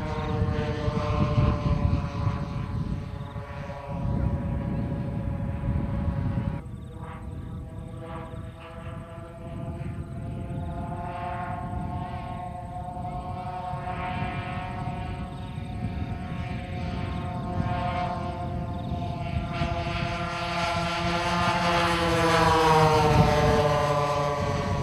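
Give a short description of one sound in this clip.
A propeller plane engine drones overhead, its pitch shifting as it passes close by.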